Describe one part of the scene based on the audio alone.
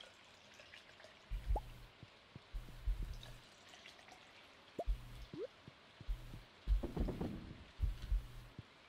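Footsteps tap softly on wooden floorboards.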